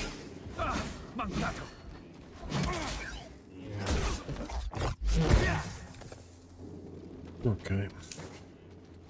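Lightsabers clash and hum.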